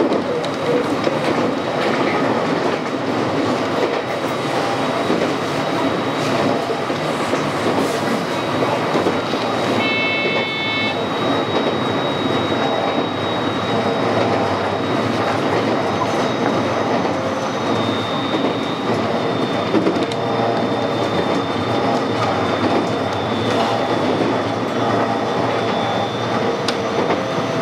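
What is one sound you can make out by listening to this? A train rumbles and rattles steadily along the track.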